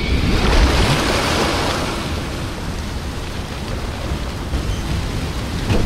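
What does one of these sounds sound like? Water pours and splashes heavily.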